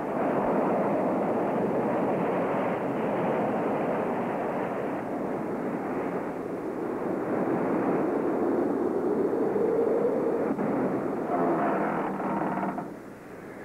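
Rough sea waves crash and surge loudly against rocks.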